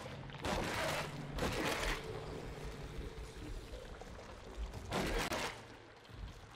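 Sharp whooshing bursts sweep past as a figure dashes.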